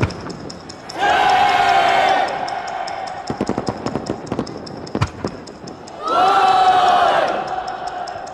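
A large crowd shouts a countdown together in unison outdoors.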